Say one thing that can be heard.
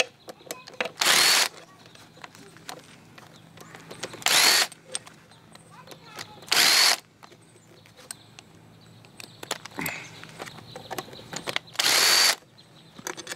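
A power ratchet whirs in short bursts, turning bolts on an outboard motor.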